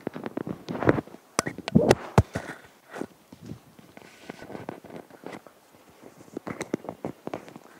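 A microphone rubs and knocks as it is handled close up.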